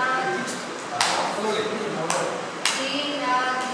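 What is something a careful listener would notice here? Hands clap sharply.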